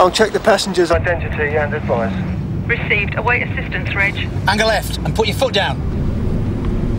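A man speaks close by inside a car.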